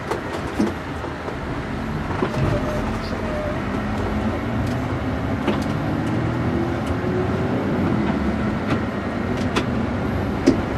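A bus engine hums steadily as it drives along a road.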